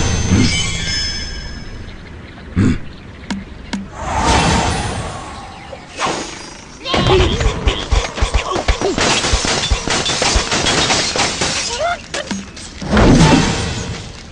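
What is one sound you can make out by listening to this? A slingshot twangs as a bird is launched in a game.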